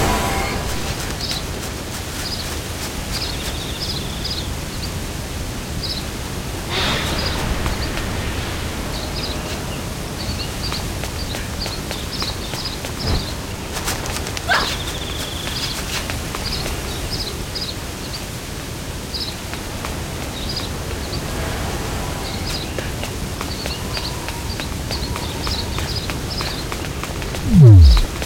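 Quick footsteps patter on grass and stone.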